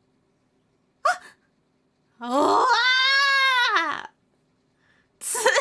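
A young woman speaks and sings playfully into a microphone, up close.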